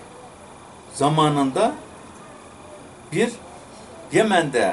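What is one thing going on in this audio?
An elderly man speaks calmly in short bursts, close by.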